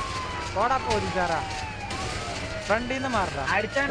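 A car bursts into flames with a roar.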